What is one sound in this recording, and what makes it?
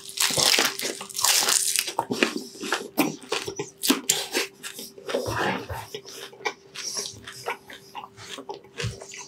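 A man chews crunchy food noisily close to a microphone.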